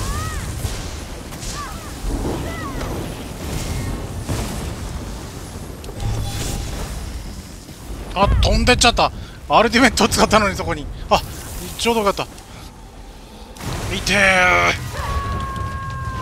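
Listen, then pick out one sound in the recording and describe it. Electric magic crackles and bursts in quick blasts.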